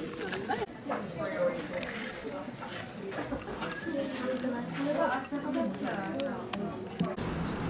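Ice cubes clink against a glass as a straw stirs a drink.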